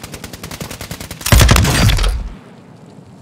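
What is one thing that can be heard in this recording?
A rifle fires in rapid bursts, followed by a loud blast.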